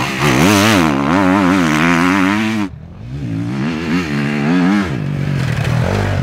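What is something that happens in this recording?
A dirt bike engine revs hard and roars up close.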